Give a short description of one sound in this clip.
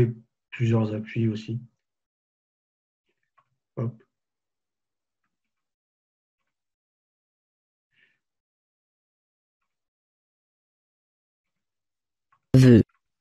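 A man speaks calmly in short bursts, close to a microphone.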